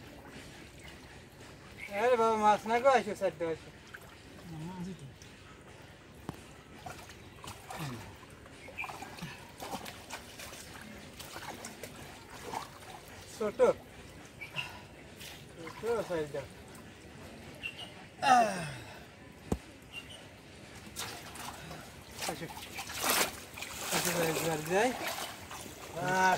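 Water splashes as hands work in shallow water.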